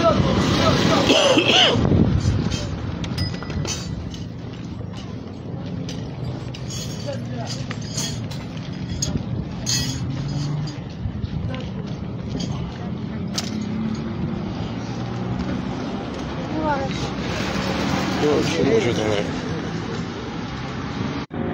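Several people talk in the distance outdoors.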